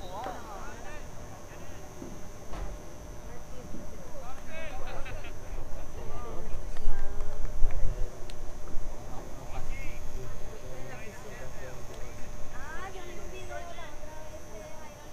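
Young men shout and call to each other across an open field in the distance.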